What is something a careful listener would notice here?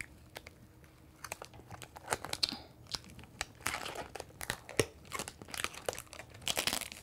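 Plastic film crinkles as it is peeled off.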